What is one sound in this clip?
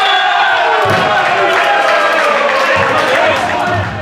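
Young men shout and cheer together in celebration.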